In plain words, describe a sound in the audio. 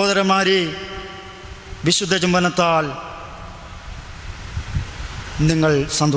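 A young man sings close to a microphone in short, drawn-out phrases with pauses between them.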